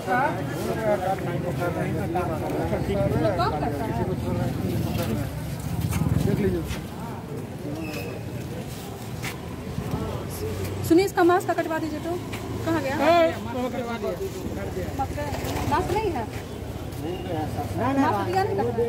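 Several men talk nearby outdoors.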